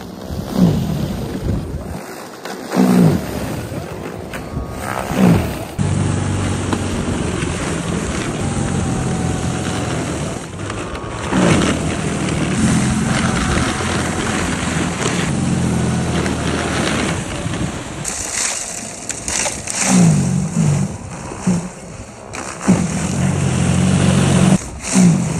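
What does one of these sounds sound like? A cordless electric single-stage snow blower whirs.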